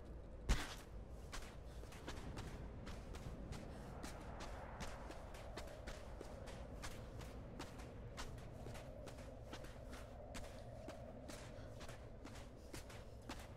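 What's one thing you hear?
Quick footsteps run over sand.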